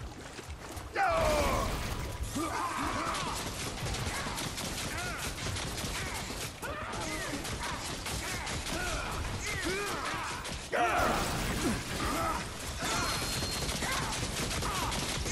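Small creatures shriek and screech in sharp, rising and falling cries.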